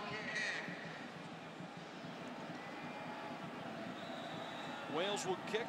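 Fans in a crowd shout and cheer loudly.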